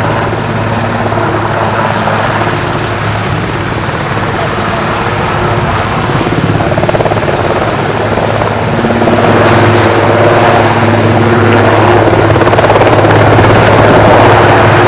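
A helicopter's rotor thumps rapidly close by, growing louder.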